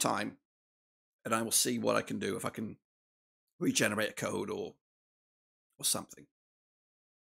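A middle-aged man talks with animation into a close microphone, in short bursts.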